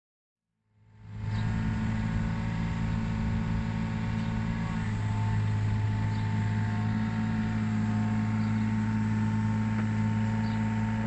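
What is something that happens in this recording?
A diesel engine hums steadily up close.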